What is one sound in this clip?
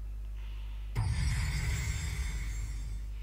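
Dramatic game music starts loudly and rings out.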